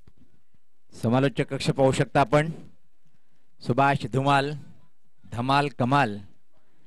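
A man speaks loudly and with animation into a microphone over a loudspeaker.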